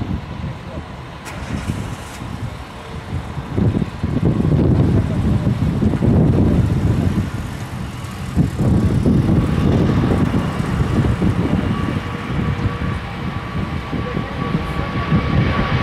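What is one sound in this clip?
A large jet airliner's engines roar loudly as it takes off.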